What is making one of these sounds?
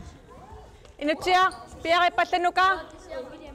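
A middle-aged woman calls out loudly in an echoing hall.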